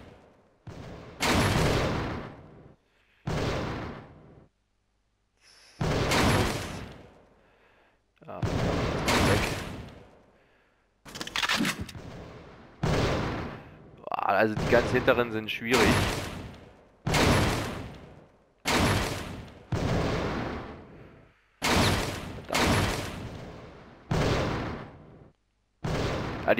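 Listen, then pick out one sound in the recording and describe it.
Pistol shots ring out one at a time, each followed by a long echoing tail.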